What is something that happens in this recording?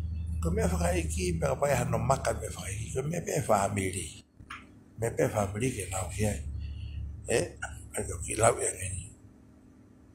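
An older man speaks calmly and close to a phone microphone.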